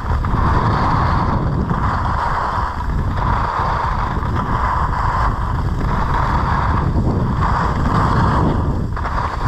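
Skis scrape and hiss over hard snow.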